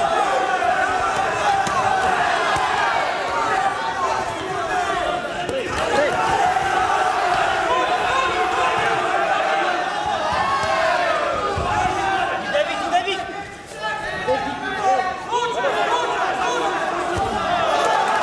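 Punches thud against bodies.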